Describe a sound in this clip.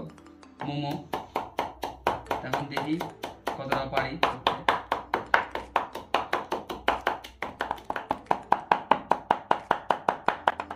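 A knife chops rapidly on a wooden board in a steady rhythm.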